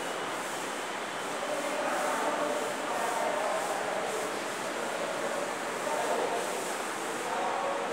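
A board eraser rubs across a chalkboard.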